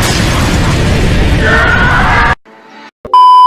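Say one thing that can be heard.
A young girl screams loudly.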